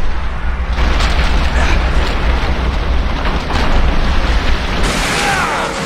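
Glass shatters with a heavy crash.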